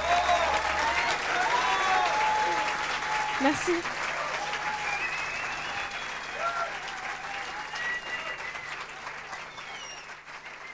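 An electric guitar plays chords.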